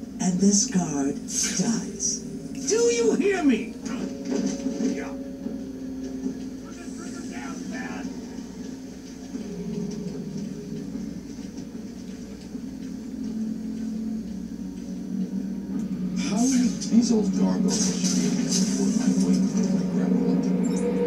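Game music and effects play from a television speaker.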